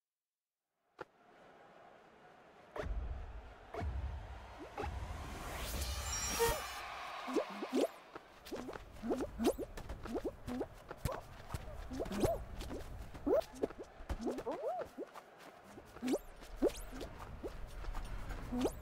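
Upbeat game music plays.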